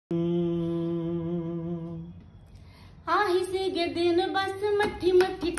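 A man sings close by, holding a long note and then a melody.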